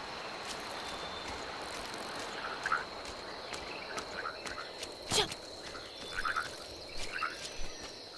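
Water splashes under running footsteps.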